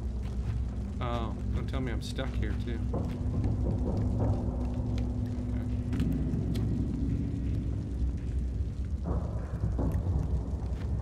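A man talks close to a microphone with animation.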